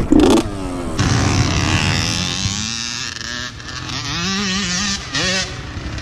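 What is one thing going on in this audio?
A quad bike engine idles close by.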